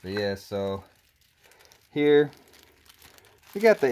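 A plastic package crinkles in a person's hands.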